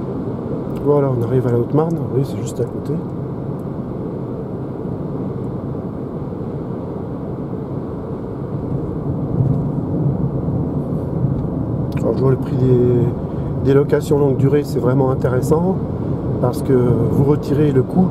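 A car drives steadily along a road, its tyres and engine humming from inside the cabin.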